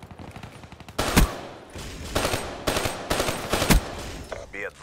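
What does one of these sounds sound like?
Rapid gunshots fire loudly in bursts.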